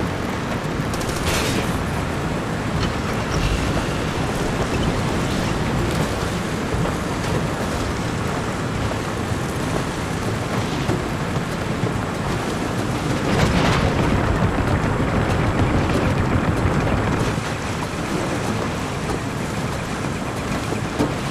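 A vehicle engine rumbles steadily as it drives along a rough dirt track.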